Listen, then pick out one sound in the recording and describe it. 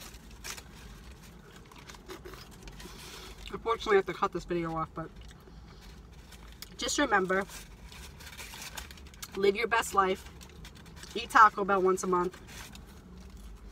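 Paper food wrappers rustle and crinkle.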